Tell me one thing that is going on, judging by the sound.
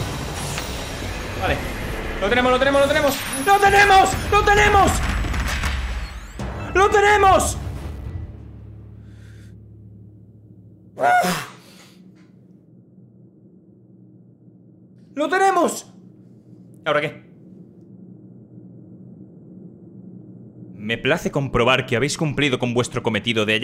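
A young man speaks with animation into a microphone, close up.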